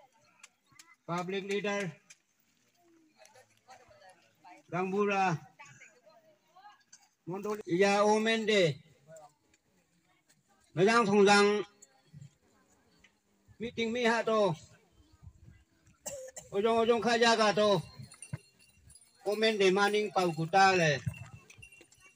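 A middle-aged man speaks slowly in short phrases through a microphone and loudspeaker, outdoors.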